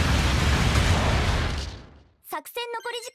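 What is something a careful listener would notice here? A large explosion booms and rumbles away.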